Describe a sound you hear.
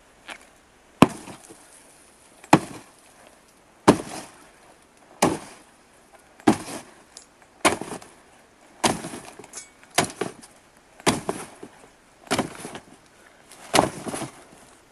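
A machete chops into conifer branches.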